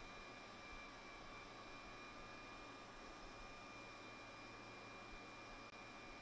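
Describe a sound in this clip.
A soldering iron sizzles faintly as solder melts on a circuit board joint.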